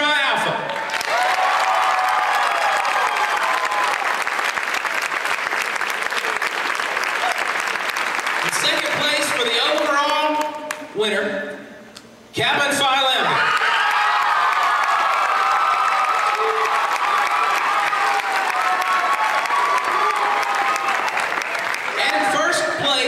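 A crowd applauds and cheers in a large echoing hall.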